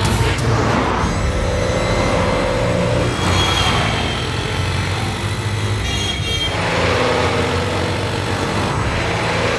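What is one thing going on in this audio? An ambulance siren wails as it speeds along a road.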